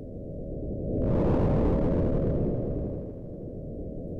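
A deep rumbling whoosh swells loudly, then fades.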